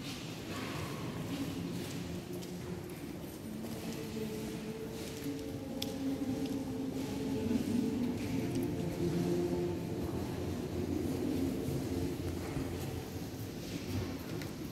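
A mixed choir of men and women sings together in a large echoing hall.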